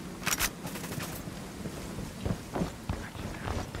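Footsteps thud on dirt and wooden boards.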